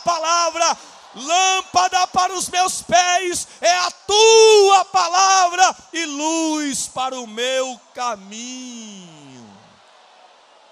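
A man preaches loudly and with passion into a microphone, in a large echoing hall.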